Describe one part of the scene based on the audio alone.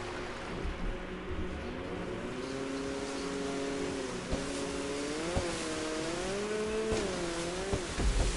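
A jet ski engine hums and revs as it speeds across water.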